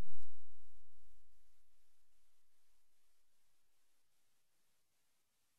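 Music from a turntable ends on a deep bass note that slowly fades away.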